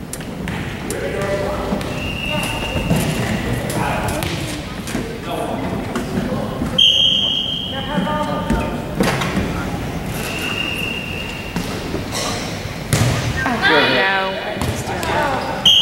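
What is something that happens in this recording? A man talks calmly in an echoing gym.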